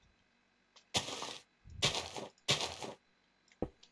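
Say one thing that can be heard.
Dirt blocks crumble and break in short bursts.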